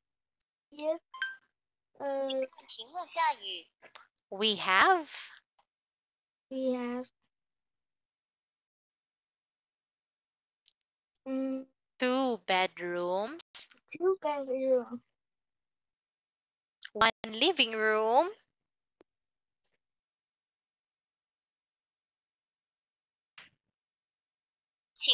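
A boy answers over an online call.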